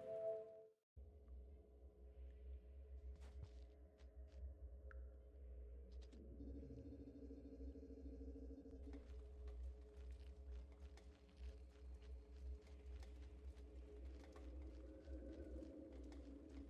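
A deep, steady drone rumbles low throughout.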